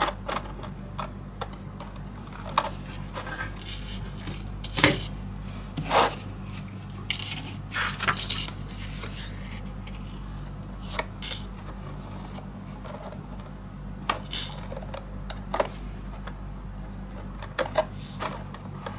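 Paper taps and clicks softly as hands press and shift it.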